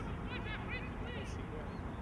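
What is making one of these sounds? A football is kicked on grass.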